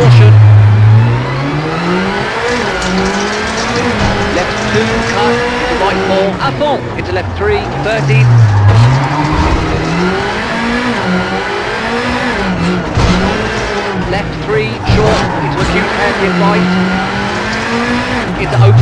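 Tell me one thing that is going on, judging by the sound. Gravel crunches and rattles under the car's tyres.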